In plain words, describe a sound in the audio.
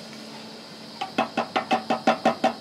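A tin can knocks quickly and repeatedly against a metal pot.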